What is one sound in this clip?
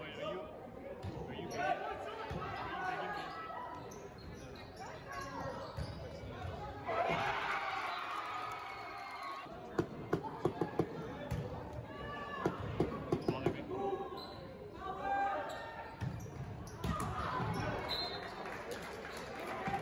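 Players and spectators shout and call out, echoing in a large hall.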